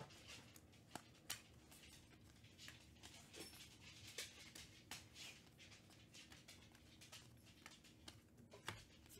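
Trading cards flick and rustle as they are shuffled through by hand, close by.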